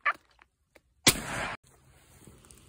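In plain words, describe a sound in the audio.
A shotgun fires a single loud blast close by.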